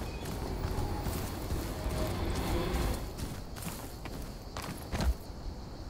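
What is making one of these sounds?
Footsteps scuff steadily over rocky ground.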